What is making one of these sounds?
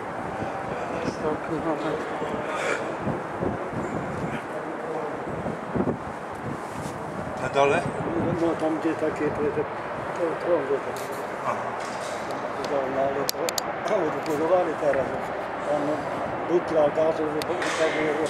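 Adult men talk casually nearby, among a murmur of other voices.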